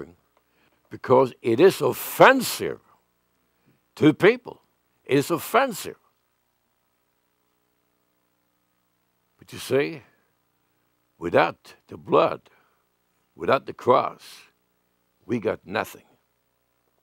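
An elderly man speaks with emphasis through a microphone, pausing between phrases.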